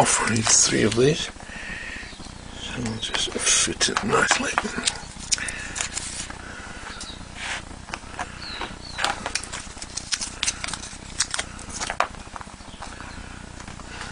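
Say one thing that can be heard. Small parts click and tap against a hard surface.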